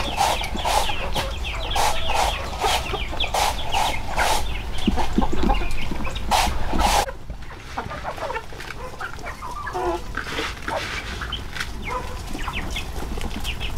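Grain patters onto the ground as it is scattered.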